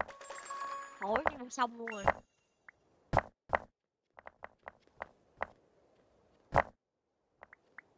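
Short clicking pops come in quick runs as blocks are placed.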